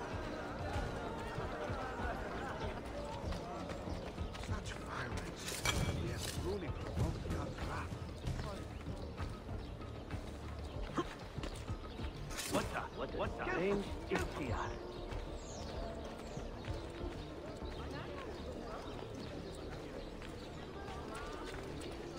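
Footsteps patter on stone paving.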